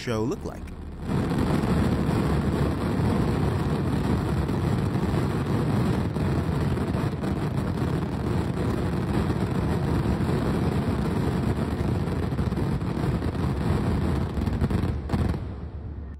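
A large fire roars with a deep, steady rumble.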